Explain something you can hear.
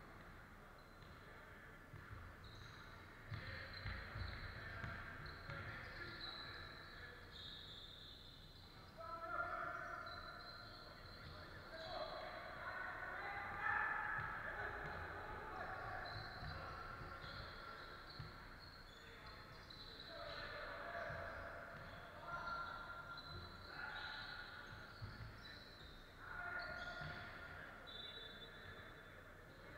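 A basketball bounces with dull thumps on the floor.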